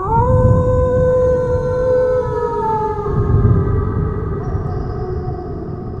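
A wolf howls long and loudly, then fades.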